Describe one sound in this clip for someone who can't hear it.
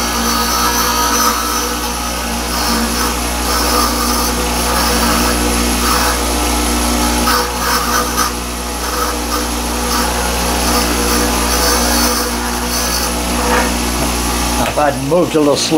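A bench grinder motor hums steadily.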